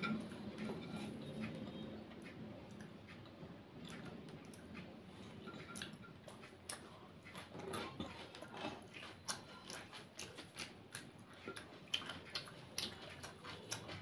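Fingers tap and scrape on a plate.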